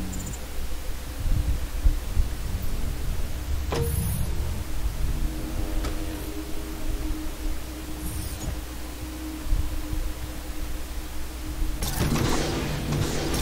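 A low, heavy rumble drones steadily throughout.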